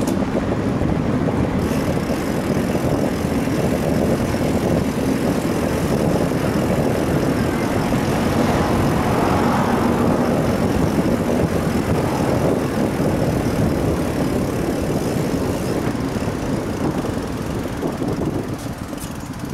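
Bicycle tyres roll on asphalt.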